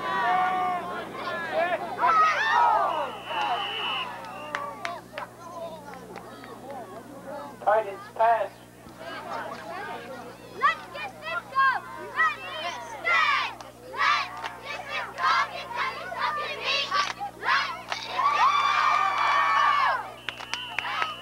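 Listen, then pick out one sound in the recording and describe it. Spectators shout and call out close by outdoors.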